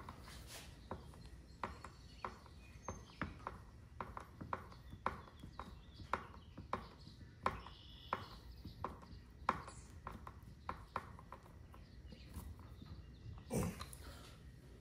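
A screwdriver clicks and ratchets against metal screws up close.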